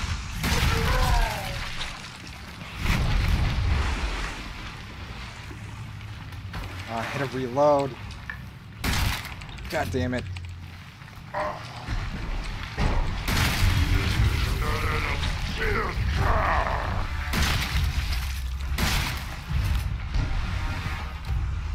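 A monstrous creature roars and growls.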